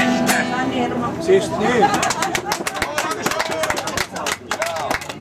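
A man sings loudly close by.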